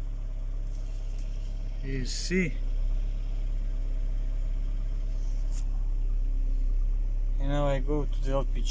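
A four-cylinder petrol engine idles, heard from inside the car.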